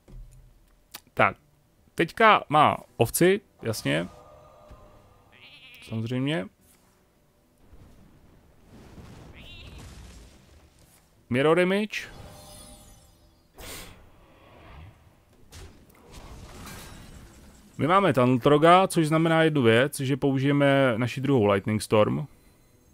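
Short game sound effects chime and burst.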